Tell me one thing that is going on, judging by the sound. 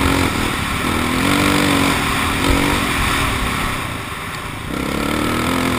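A dirt bike engine revs and whines up close, rising and falling in pitch.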